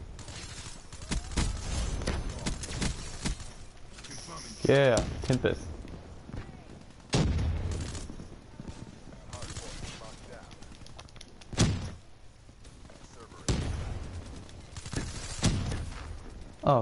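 Gunfire from a video game rattles in rapid bursts.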